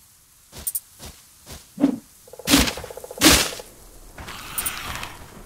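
A short chime sounds as an item is collected.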